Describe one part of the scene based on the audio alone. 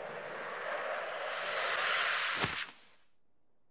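A rushing whoosh of wind sweeps past and cuts off.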